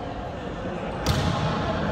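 A volleyball is struck hard with a single slap.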